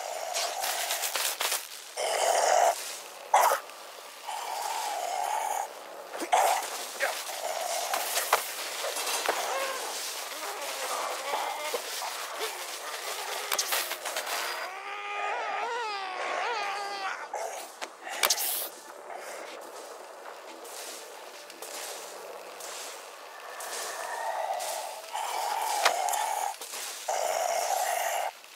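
Electricity crackles and buzzes across a wet floor.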